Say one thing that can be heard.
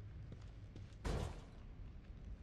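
A metal gate clanks as it swings open.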